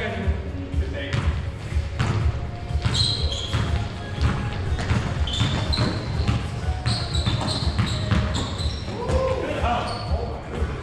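Sneakers squeak sharply on a wooden floor in a large echoing gym.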